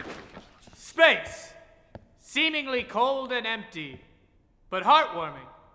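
A young man speaks loudly with animation.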